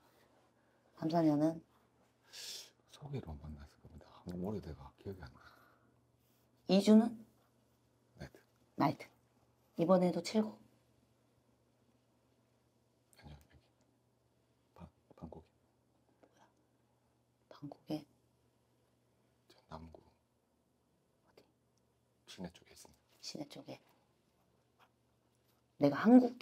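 A young woman speaks calmly and closely into a microphone, in short phrases with pauses.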